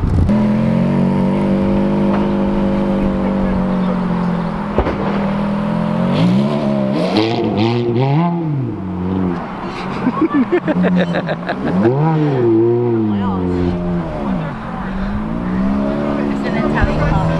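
A sports car engine idles with a deep rumble, then revs up and down repeatedly.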